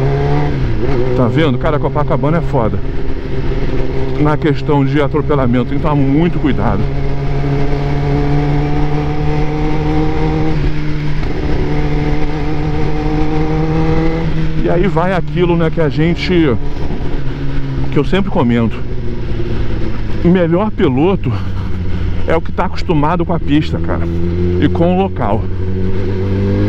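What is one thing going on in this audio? A motorcycle engine hums steadily, rising and falling in pitch as it rides.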